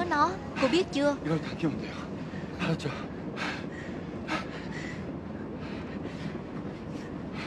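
A young man speaks urgently and tensely up close.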